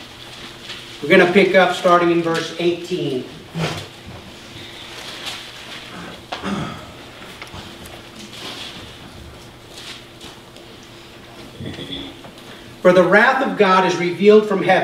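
A man speaks into a microphone in a large room, reading aloud with pauses.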